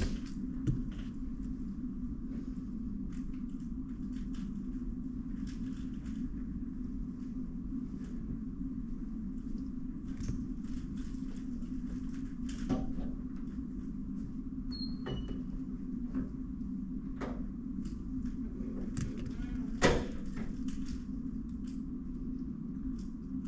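Plastic puzzle cubes click and rattle as they are handled.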